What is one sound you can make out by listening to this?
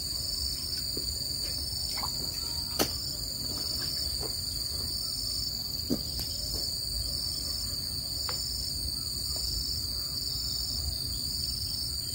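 A man knocks and scrapes at the ground with a tool.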